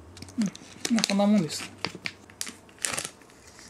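Small knocks and rustles as a packet is set down on a table.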